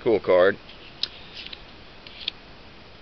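Playing cards rustle and slide against each other in hands.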